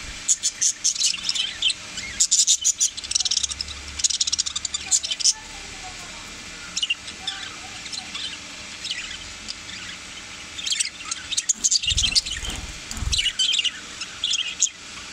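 Budgerigars chirp and chatter rapidly close by.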